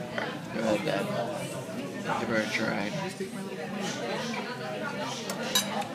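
A spoon scrapes and clinks against a plate.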